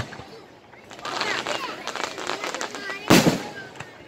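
Fireworks crackle and sparkle.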